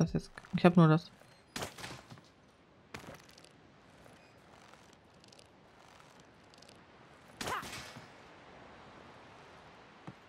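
A slingshot snaps as it fires a stone.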